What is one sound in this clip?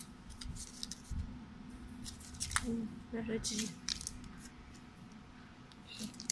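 Plastic packets crinkle and rustle in hands.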